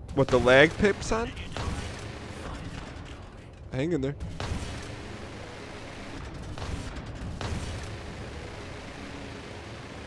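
Spaceship cannons fire in rapid bursts.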